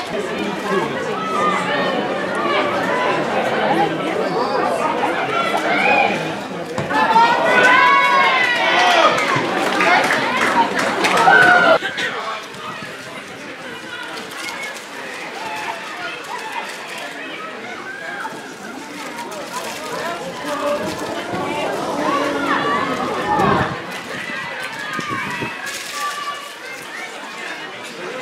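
Young women shout to each other across an open outdoor pitch.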